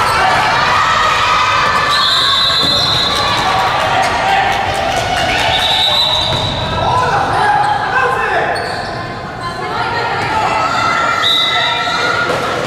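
Young girls shout and call out across a large echoing hall.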